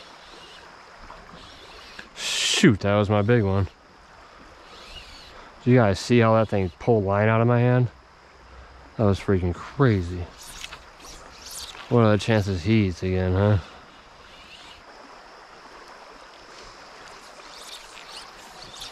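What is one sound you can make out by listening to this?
A river flows and ripples gently outdoors.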